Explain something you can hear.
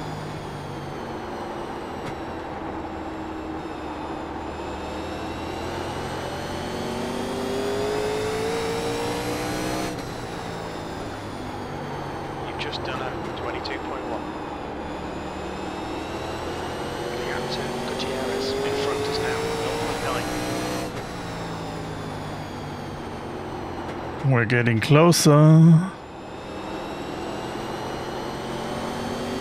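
A race car engine roars steadily, rising in pitch as it speeds up and dropping as it slows for turns.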